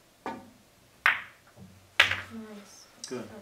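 Pool balls clack against each other and roll across the table.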